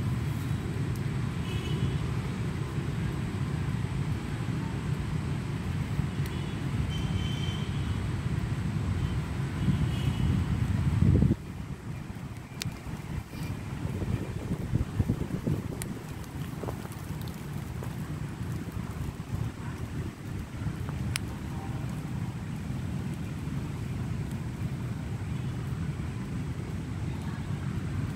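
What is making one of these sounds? Gusty wind rushes through the trees outdoors, stronger at first and then easing.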